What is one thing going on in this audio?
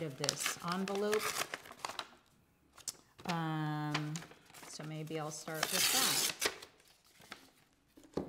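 Paper rustles and tears.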